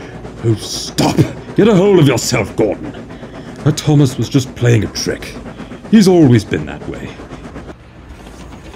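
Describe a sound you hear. A man speaks in a deep, grumbling voice.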